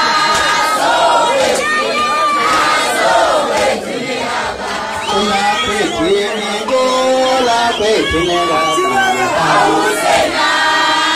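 A crowd of women sings and cheers loudly together.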